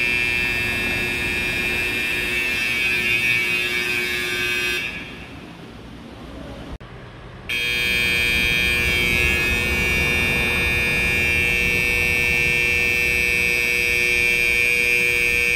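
An electronic alarm blares with a shrill, steady tone, breaks off briefly, and starts again.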